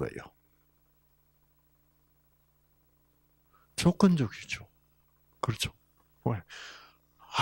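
An elderly man speaks into a microphone in short bursts, heard through a loudspeaker.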